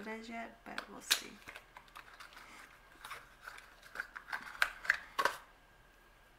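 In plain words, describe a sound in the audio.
Small plastic makeup cases click and tap as they are handled.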